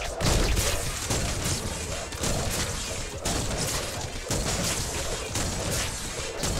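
A rapid-fire energy gun shoots in bursts.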